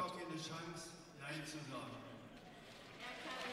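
An older man speaks with animation through a microphone in a large echoing hall.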